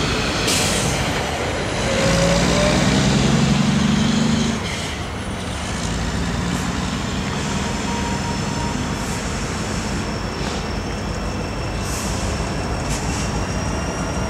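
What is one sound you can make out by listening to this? A diesel locomotive engine rumbles as it approaches.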